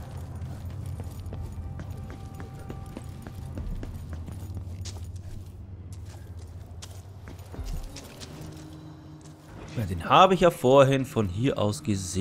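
Footsteps fall on stone and creak on wooden planks.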